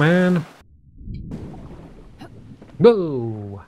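Water sloshes and splashes around a swimmer.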